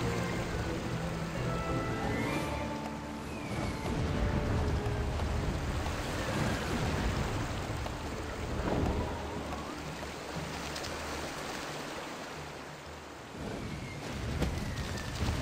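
Large wings flap steadily.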